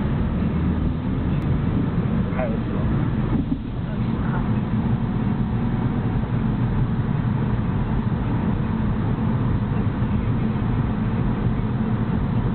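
A car engine hums steadily from inside as the car drives along a road.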